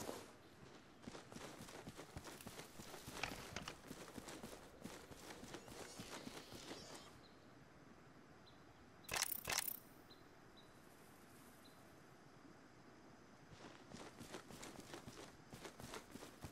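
Footsteps patter quickly over grass in a video game.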